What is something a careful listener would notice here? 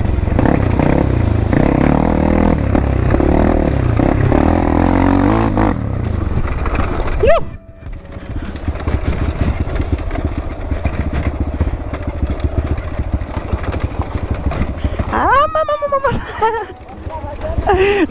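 A dirt bike engine rumbles and revs up close.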